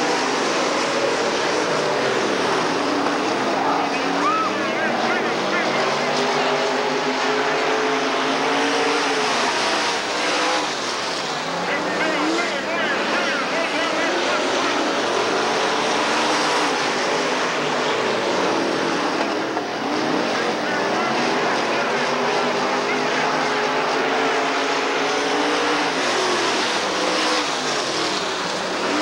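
Race car engines roar loudly, rising and falling in pitch as the cars speed past.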